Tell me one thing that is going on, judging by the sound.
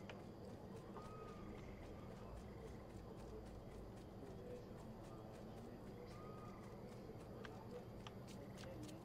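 Footsteps run quickly over grass and stone.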